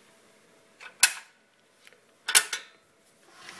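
A metal appliance lid clicks and clacks.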